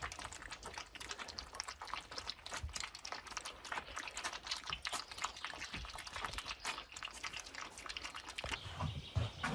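Young foxes lap and slurp milk quickly.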